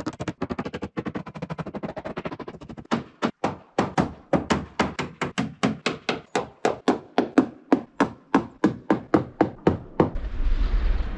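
A man strikes a wooden wall with quick, rhythmic knocks.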